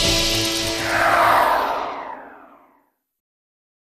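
A game transition whooshes loudly and fades away.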